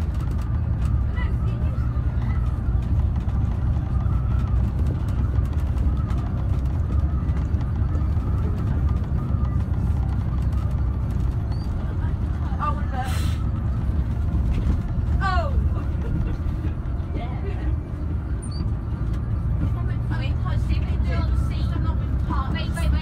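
A bus engine rumbles steadily from inside the bus as it drives along.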